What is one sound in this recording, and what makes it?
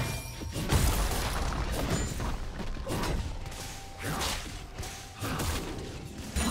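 Magic blasts and hits crackle and thump in a fast fight.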